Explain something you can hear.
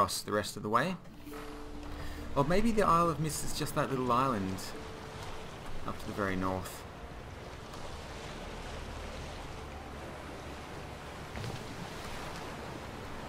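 Waves slosh and splash around a small sailing boat.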